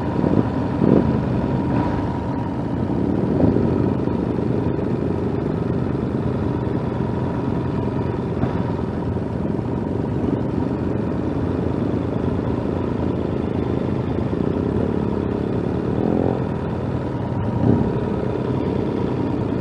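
Wind buffets loudly against the rider.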